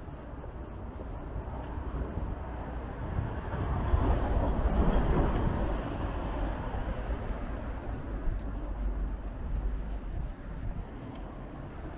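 Footsteps pass close by on a pavement.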